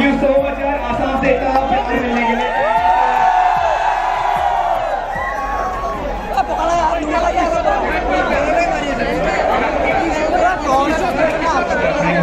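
A young man speaks excitedly into a microphone over loudspeakers.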